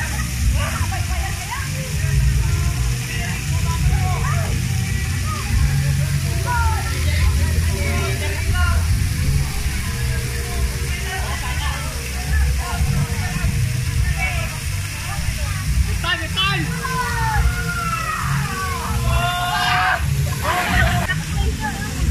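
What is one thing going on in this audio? Young men shout and call out outdoors, some distance away.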